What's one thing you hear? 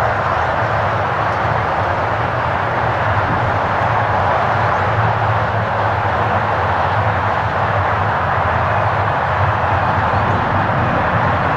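A twin-engine jet airliner roars steadily as it comes in on approach, growing slightly louder.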